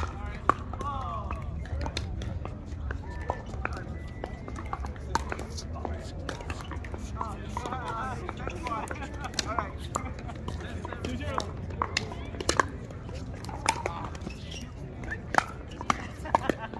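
Pickleball paddles hit a plastic ball with sharp pops, back and forth across an outdoor court.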